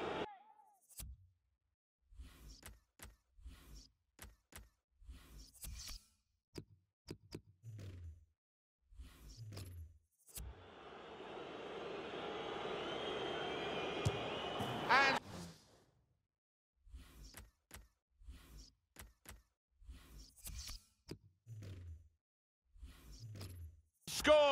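Menu selections click with short beeps.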